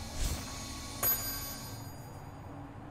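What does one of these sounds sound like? A magic spell bursts with a shimmering chime.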